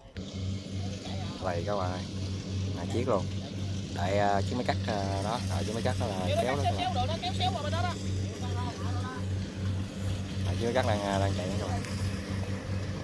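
Men talk to each other.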